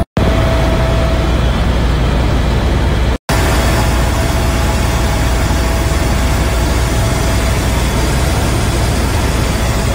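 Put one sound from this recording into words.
A helicopter engine drones with a loud, steady rumble.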